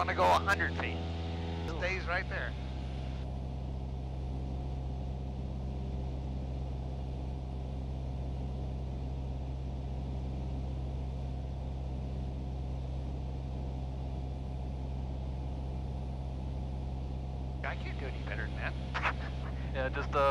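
A small airplane engine drones steadily, heard from inside the cabin.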